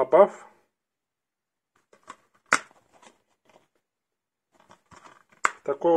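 A plastic disc case clicks open and snaps shut.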